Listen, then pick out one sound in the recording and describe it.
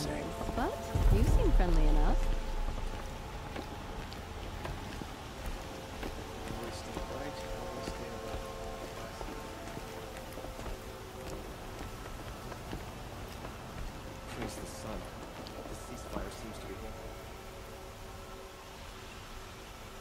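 Footsteps tap on a wooden bridge.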